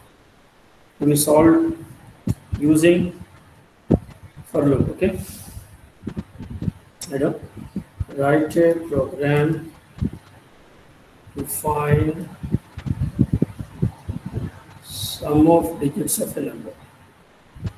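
A man speaks calmly over an online call, explaining in pauses.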